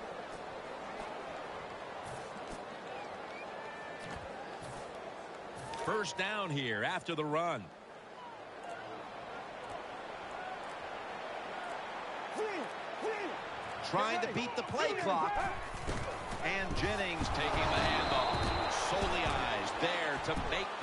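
A large stadium crowd murmurs and cheers, growing louder toward the end.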